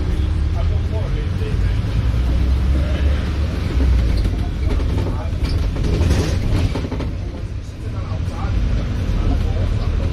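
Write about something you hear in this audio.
A bus engine rumbles steadily up close as the bus drives along.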